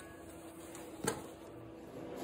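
A wooden board knocks lightly against metal.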